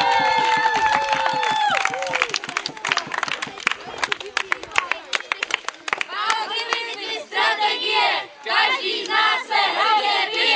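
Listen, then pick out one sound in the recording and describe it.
A group of children sings loudly together outdoors.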